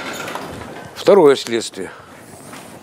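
A middle-aged man lectures loudly in an echoing hall.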